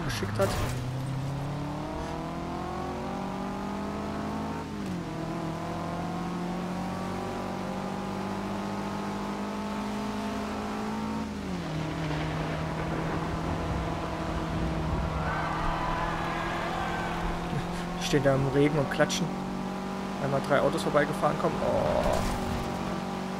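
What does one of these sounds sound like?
A car engine revs high, rising in pitch and dropping briefly at each gear change.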